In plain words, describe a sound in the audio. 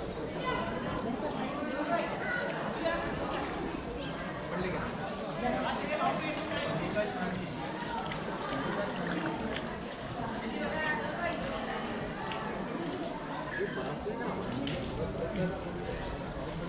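A crowd of men and women chatter in the background outdoors.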